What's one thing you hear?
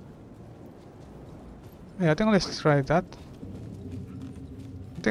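Footsteps walk slowly over a carpeted floor.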